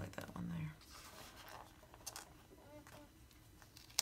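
Planner pages flip and flutter.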